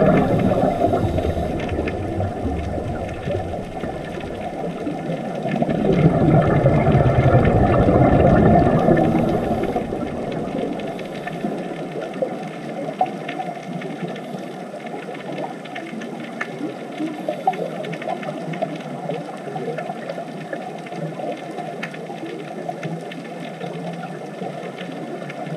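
Air bubbles from scuba divers gurgle and rush underwater.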